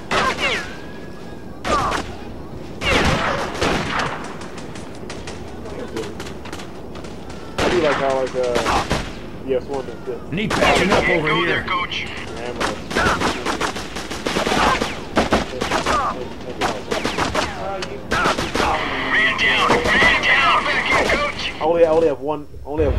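Rifles fire in quick bursts of gunshots.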